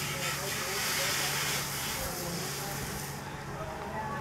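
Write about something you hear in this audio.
Water hisses and sprays hard from a fire hose.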